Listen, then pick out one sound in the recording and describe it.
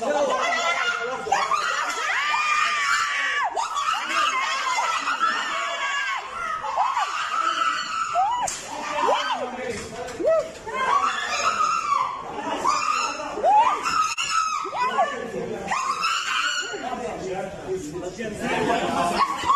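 A woman shouts angrily close by.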